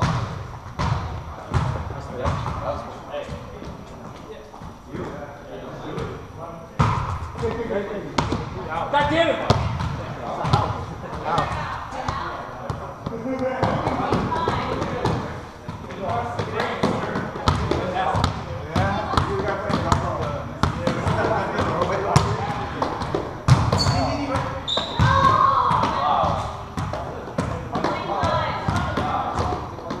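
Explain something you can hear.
Men call out and talk to each other across a large echoing gym.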